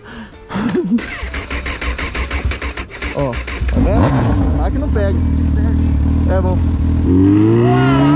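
A motorcycle engine idles with a throbbing rumble.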